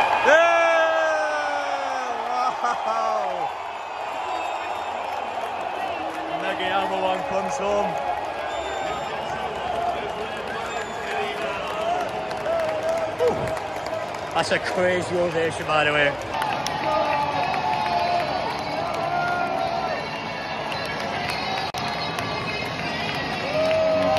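A large crowd of fans chants and sings loudly in a huge echoing stadium.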